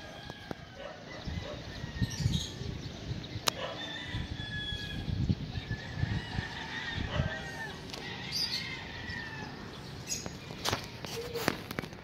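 Birds chirp and call overhead.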